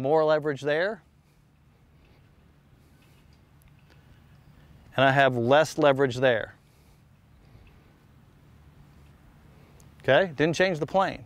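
A middle-aged man speaks calmly and clearly into a close microphone, in short bursts with pauses.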